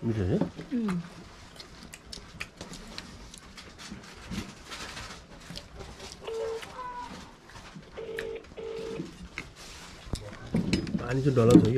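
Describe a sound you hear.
A spoon scrapes and clinks on a plate.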